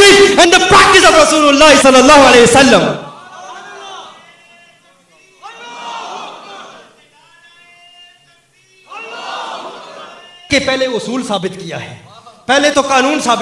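A man chants loudly into a microphone in a large echoing hall.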